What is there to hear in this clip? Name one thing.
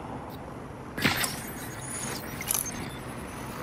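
An electronic whoosh and crackle sweeps past as a scanning effect switches on.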